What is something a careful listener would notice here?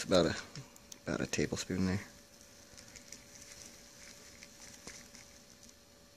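Sand pours from a bag into a plastic pan.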